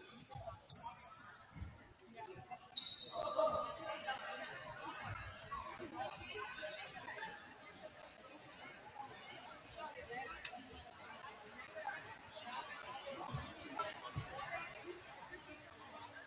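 A crowd chatters and murmurs in the stands.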